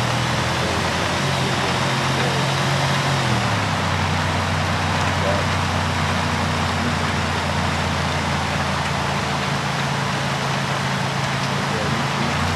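Tyres crunch and rumble over a dirt road.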